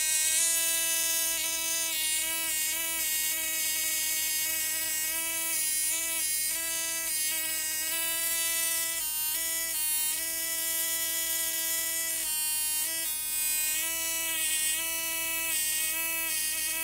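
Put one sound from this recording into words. An electric spark buzzes and crackles steadily, breaking off now and then.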